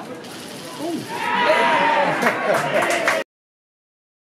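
Spectators cheer and shout loudly.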